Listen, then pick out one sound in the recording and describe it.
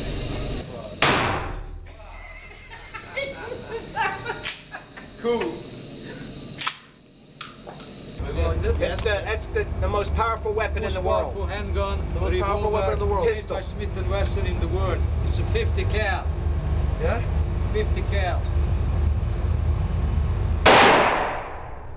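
Gunshots boom loudly in an echoing room.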